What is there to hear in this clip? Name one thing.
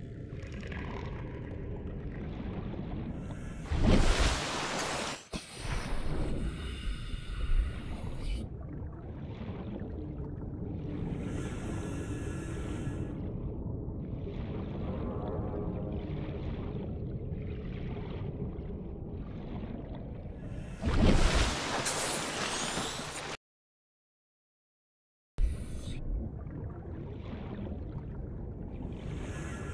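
A low, muffled underwater rumble drones on.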